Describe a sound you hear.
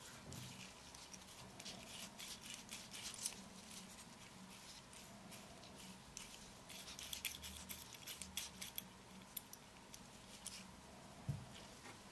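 Gloved fingers rub and tap on a small metal lens, with soft crinkling and clicking.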